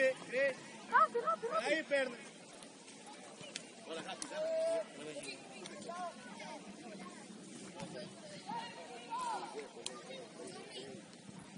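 Young players shout to each other in the distance.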